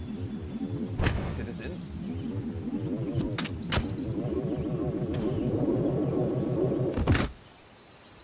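Jet thrusters roar loudly and unevenly.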